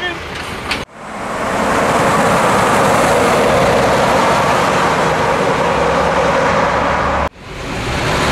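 A heavy truck drives past on a road with tyres roaring.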